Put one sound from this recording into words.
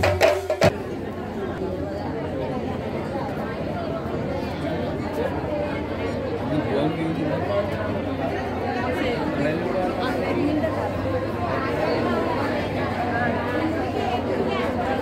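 A large crowd of men and women chatters all around.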